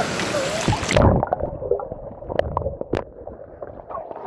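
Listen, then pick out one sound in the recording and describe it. Water gurgles and bubbles underwater around the microphone.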